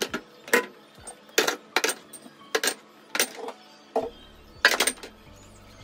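Glass bottles clink against each other.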